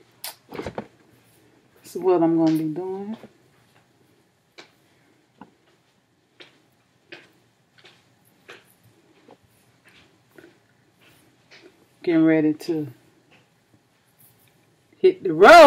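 Hair rustles softly under fingers.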